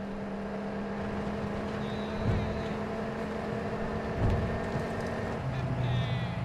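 A pickup truck's engine hums steadily as it drives past, then fades away.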